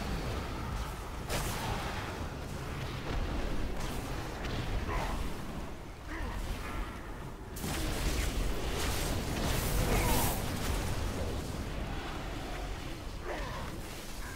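Magic spells and weapon strikes crash in a video game battle.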